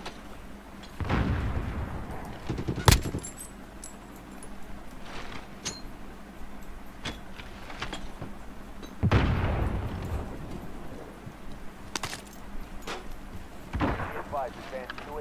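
Gunshots crack with rumbling echoes.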